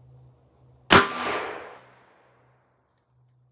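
A revolver fires a single loud shot outdoors, echoing away.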